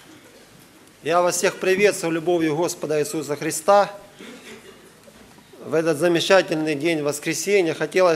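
A young man speaks calmly into a microphone, heard through loudspeakers in an echoing hall.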